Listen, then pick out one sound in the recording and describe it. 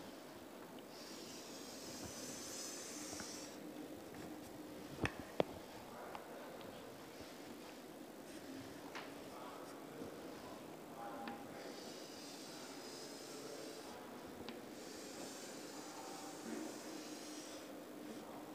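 Chalk scratches across a blackboard in long strokes.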